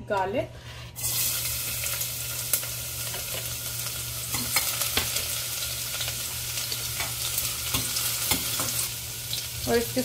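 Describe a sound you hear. Garlic sizzles loudly in hot oil.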